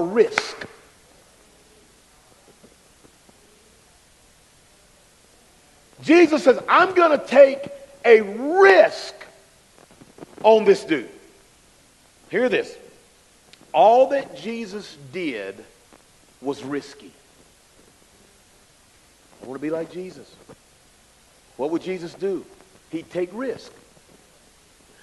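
A man speaks with animation into a microphone, in pauses.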